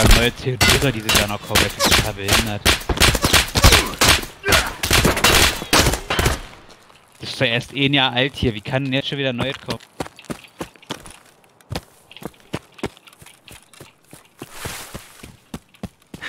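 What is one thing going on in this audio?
Footsteps run steadily along hard ground and through grass.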